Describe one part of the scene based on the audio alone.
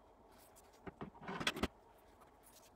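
A metal tube knocks softly as it is set down.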